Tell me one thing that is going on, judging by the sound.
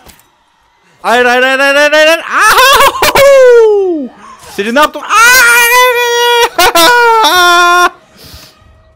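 A young man screams loudly close to a microphone.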